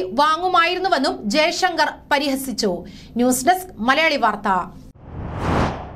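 A young woman reads out calmly and clearly, close by.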